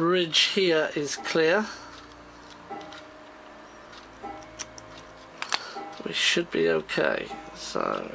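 A screwdriver scrapes on a small plastic part.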